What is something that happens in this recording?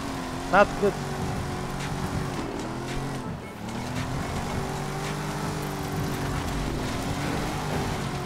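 Tyres skid and crunch over rough ground.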